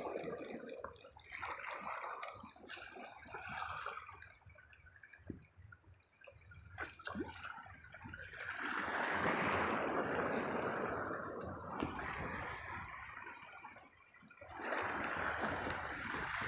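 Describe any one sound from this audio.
Small waves lap and splash close by.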